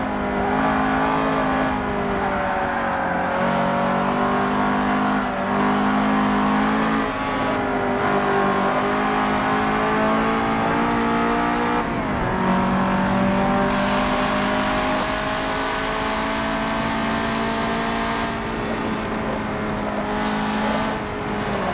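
A racing car engine roars loudly and steadily.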